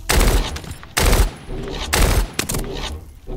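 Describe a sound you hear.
Loud explosions boom in quick succession.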